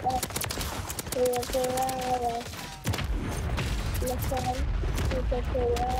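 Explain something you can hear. Rapid gunfire cracks and echoes.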